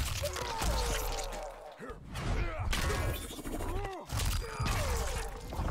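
Heavy blows land with wet, crunching thuds.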